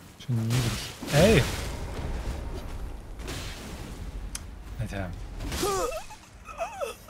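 Fire whooshes and crackles in bursts.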